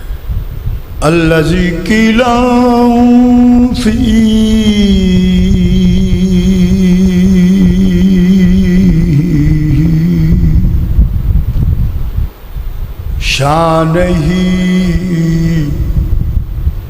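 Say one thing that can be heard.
An elderly man chants in long, drawn-out notes through a loudspeaker in an echoing hall.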